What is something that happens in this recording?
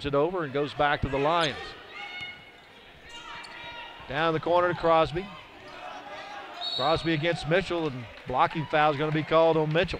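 A basketball bounces on a wooden gym floor.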